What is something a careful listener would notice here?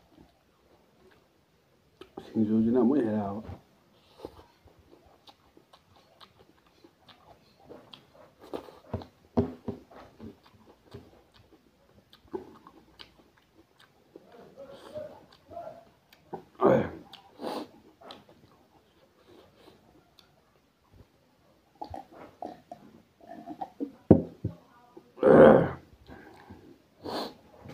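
A young man chews food loudly and wetly, close by.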